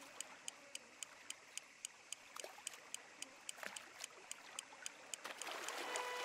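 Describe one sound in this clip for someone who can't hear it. A fishing reel clicks in quick, even ticks.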